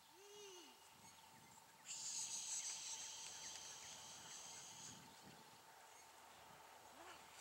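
A woman calls out commands to a dog in the distance.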